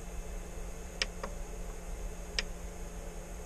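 Buttons on a device click as they are pressed.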